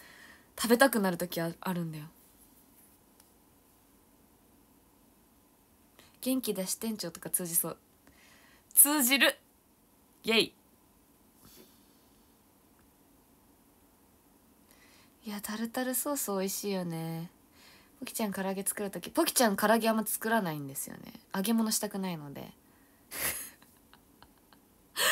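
A young woman talks cheerfully and close to a microphone, in short bursts with pauses.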